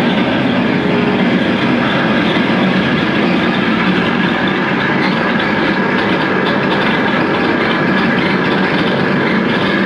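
A loud distorted electric guitar plays through an amplifier in an echoing room.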